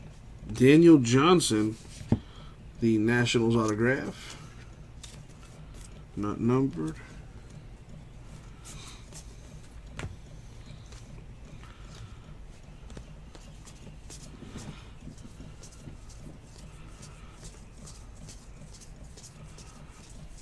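Trading cards slide and rustle against each other as they are shuffled by hand.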